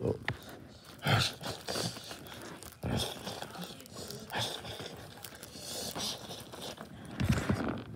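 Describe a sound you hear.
Foil and paper crinkle and rustle as a hand crumples them.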